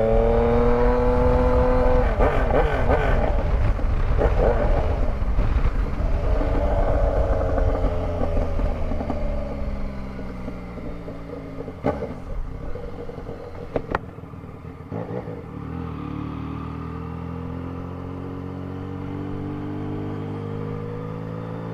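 A three-cylinder sport-touring motorcycle engine falls in revs as the bike slows down, then picks up speed again.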